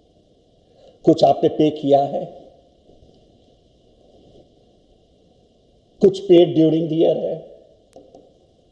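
An elderly man speaks calmly into a close microphone, in short bursts.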